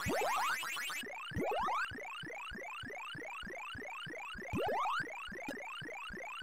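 A rising electronic siren-like tone repeats steadily in an arcade game.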